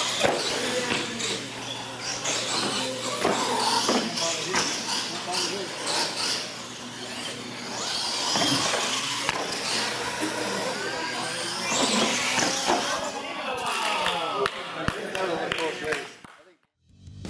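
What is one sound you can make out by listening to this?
Small electric motors whine as toy trucks race about.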